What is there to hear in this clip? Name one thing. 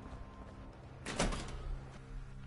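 A heavy metal door clanks open.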